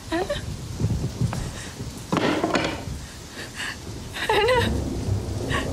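A middle-aged woman sobs close by.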